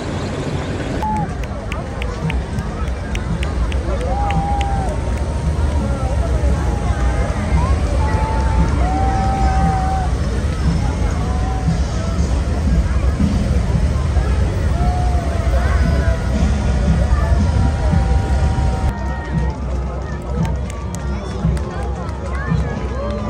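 A crowd of spectators murmurs and chatters nearby.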